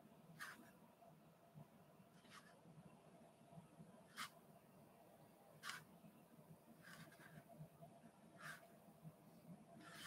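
A fine brush strokes softly across paper.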